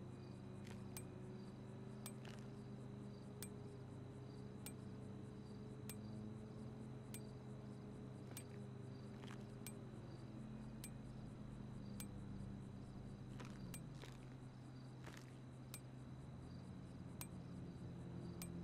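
Short menu clicks tick at a steady pace.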